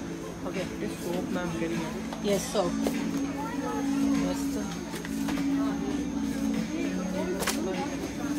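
Shoes tap on a hard floor as a person walks.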